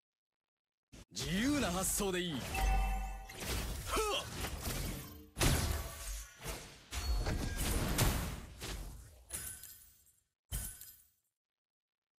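Magical blasts and clashing hits ring out in a fast fight.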